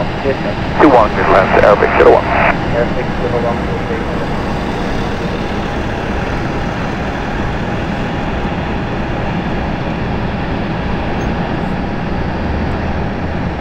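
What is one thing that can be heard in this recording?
A propeller aircraft drones steadily in the distance.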